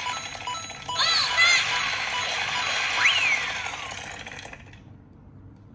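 Cheerful game music plays with chiming sound effects.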